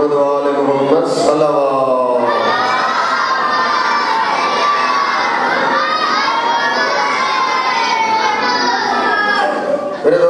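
A middle-aged man chants in a long, wavering melodic voice through a microphone and loudspeakers.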